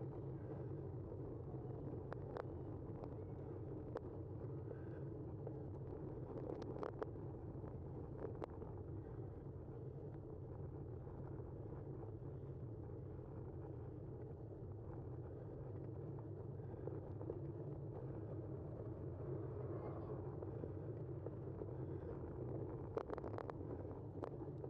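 Wind rumbles steadily against the microphone while riding outdoors.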